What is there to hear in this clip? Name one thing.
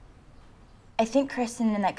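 A young woman speaks with feeling, close by.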